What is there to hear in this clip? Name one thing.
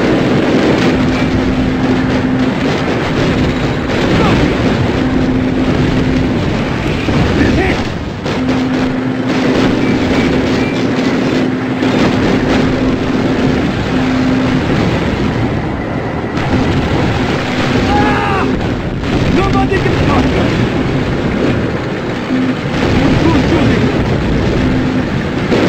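A tank engine rumbles and clanks steadily.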